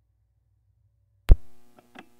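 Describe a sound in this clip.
A turntable's needle drops onto a record with a loud thump.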